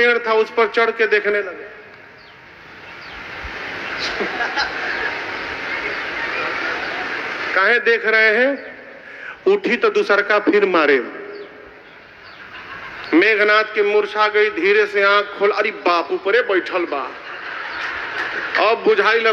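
A man chants with feeling into a microphone, heard through loudspeakers in a large hall.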